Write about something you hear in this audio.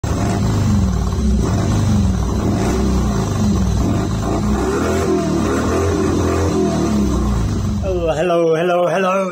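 A motorcycle engine idles with a deep, steady rumble close by.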